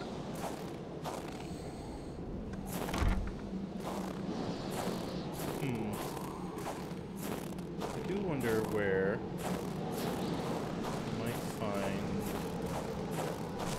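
Footsteps crunch through snow at a steady walking pace.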